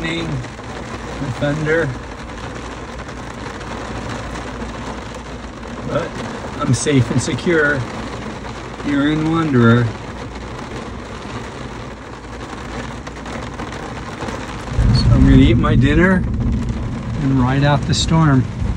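Heavy rain drums steadily on a car windshield.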